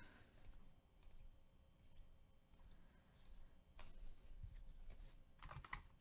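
Trading cards slide and shuffle against each other in hand.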